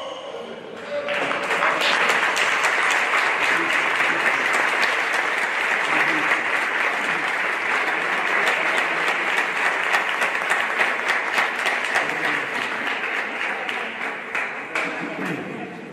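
A crowd applauds loudly in a large echoing hall.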